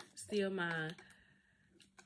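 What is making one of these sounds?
Long fingernails tap on a plastic bottle.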